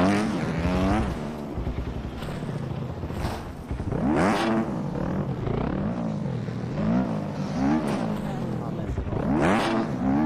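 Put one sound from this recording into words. A motocross bike engine revs up and down repeatedly, whining loudly.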